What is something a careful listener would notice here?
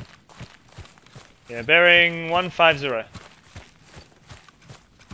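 Footsteps crunch steadily through grass and undergrowth.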